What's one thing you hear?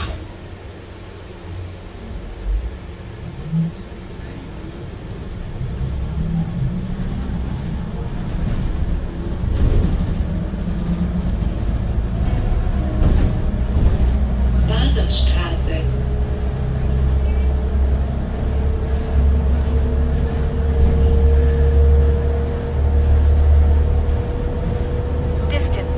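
A vehicle rumbles low and steadily as it drives along, growing louder as it picks up speed.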